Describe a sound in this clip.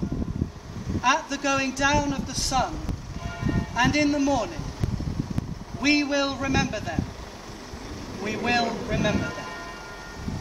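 A man chants a prayer aloud outdoors, in long held phrases.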